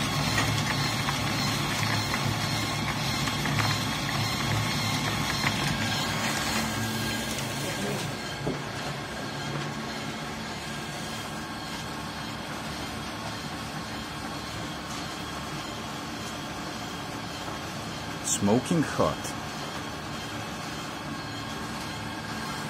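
A machine hums and rattles steadily.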